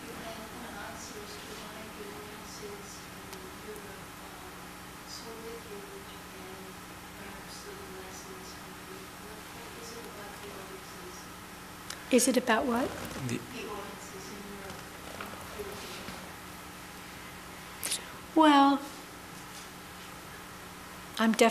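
An older woman speaks softly and hesitantly into a microphone.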